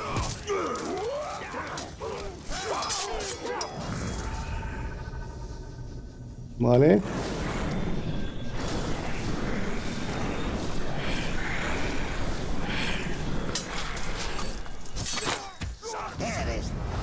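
Swords clash and clang in a fierce fight.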